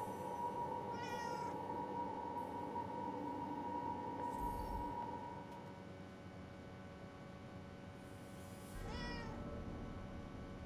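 A small animal squeaks in short high chirps.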